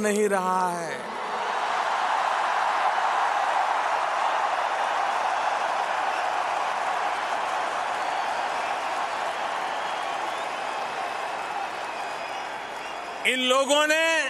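A huge crowd cheers and applauds loudly.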